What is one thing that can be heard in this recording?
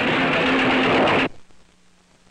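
A fire crackles and roars.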